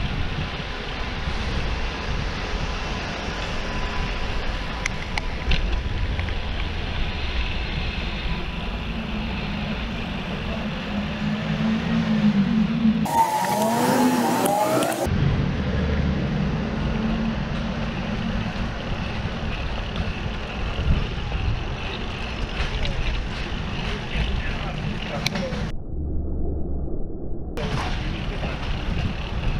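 City traffic hums in the background.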